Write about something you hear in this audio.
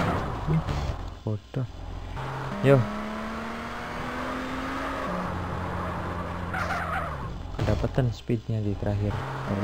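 A car engine revs and drones.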